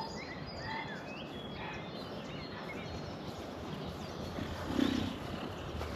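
Footsteps swish through dry grass, coming closer.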